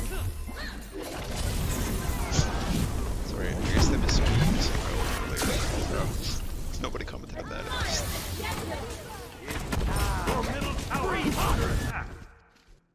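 Video game combat effects clash and whoosh with bursts of magic.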